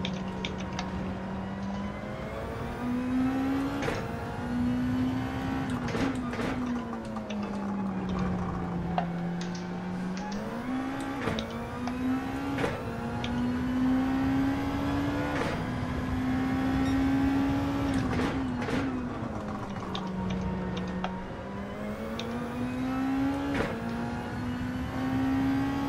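A racing car engine revs up and down, with quick gear changes.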